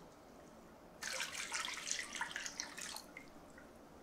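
Water pours into a metal tray.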